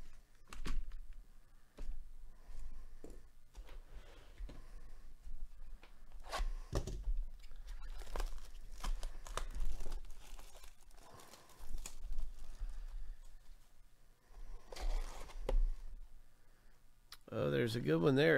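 Cardboard and plastic wrapping rustle and crinkle as hands handle a box.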